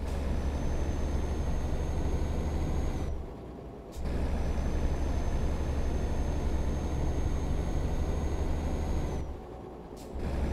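A truck engine drones steadily at low pitch, dropping out briefly twice.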